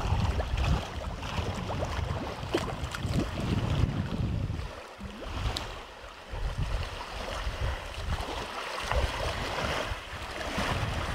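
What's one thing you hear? Water splashes and ripples as a fish swims near the surface.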